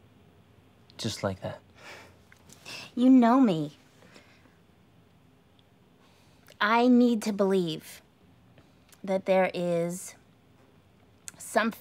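A woman speaks quietly and closely, in short bursts.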